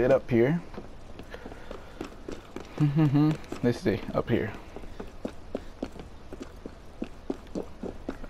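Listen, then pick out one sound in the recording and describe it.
Quick footsteps patter across a tiled roof.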